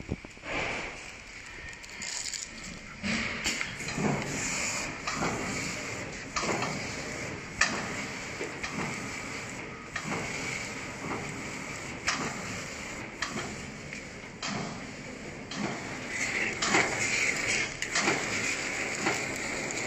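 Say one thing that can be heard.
A packing machine runs with a steady mechanical hum and regular clacking.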